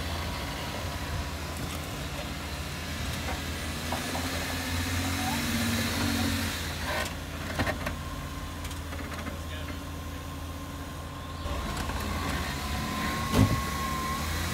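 An off-road vehicle's engine idles and rumbles low as it crawls over rocks.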